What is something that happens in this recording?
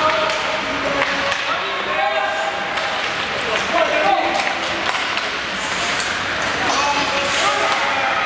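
Ice skates scrape and carve across the ice in a large echoing arena.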